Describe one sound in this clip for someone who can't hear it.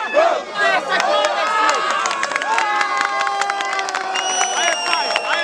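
People in a crowd clap their hands.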